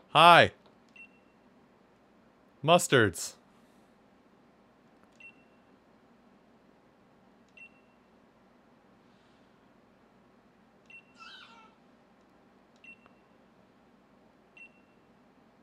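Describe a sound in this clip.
A short electronic blip sounds each time a game's dialogue text advances.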